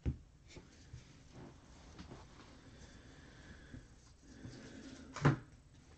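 Stacked trading cards rustle and slide as hands flip through them.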